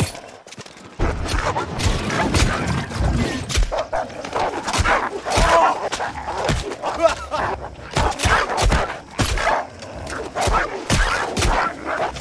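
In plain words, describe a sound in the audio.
Wolves snarl and yelp while being struck.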